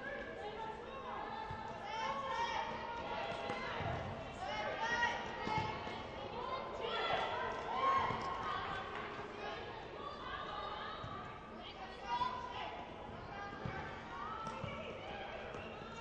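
Young women shout to each other across a large echoing gym.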